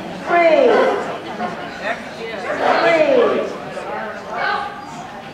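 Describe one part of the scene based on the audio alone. A woman calls out loudly in a large echoing hall.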